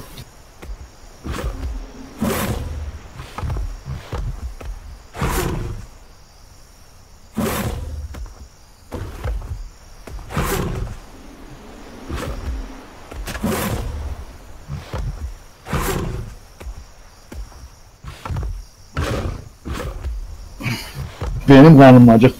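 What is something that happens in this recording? Heavy footsteps of a large creature thud steadily on the ground.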